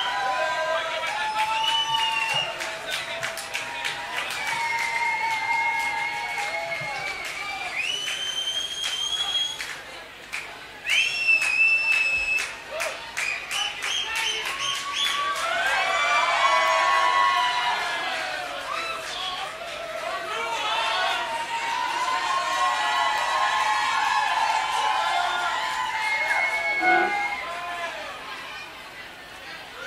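A large crowd cheers and whistles loudly.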